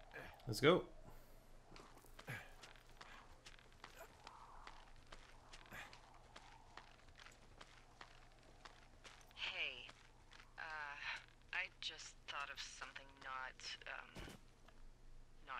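A rope creaks and rubs as hands grip it during a climb.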